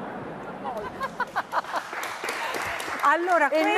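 A middle-aged woman laughs loudly into a microphone.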